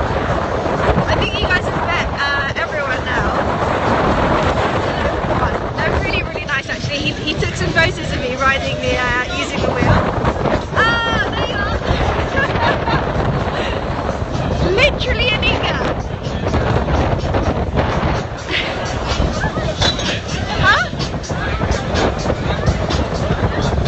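A young woman talks excitedly close to the microphone.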